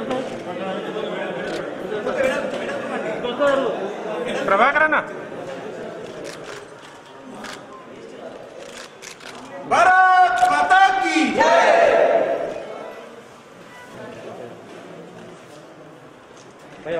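A crowd of men talks and murmurs at once.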